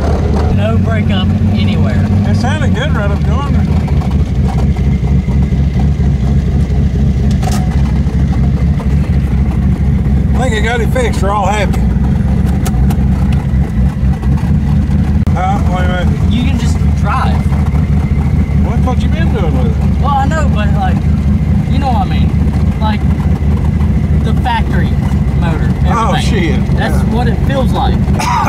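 A car engine rumbles steadily while driving over rough ground.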